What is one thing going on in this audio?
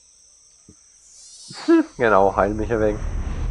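A magic spell whooshes and shimmers.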